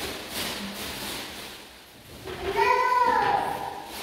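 Plastic sheeting rustles and crinkles.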